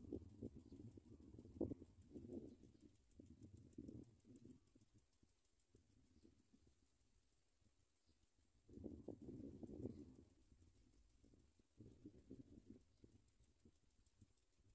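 Nestling birds cheep softly, begging for food.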